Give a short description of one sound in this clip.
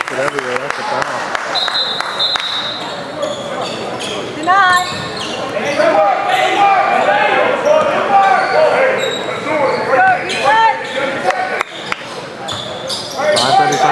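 Spectators and players shout and chatter in a large echoing gym.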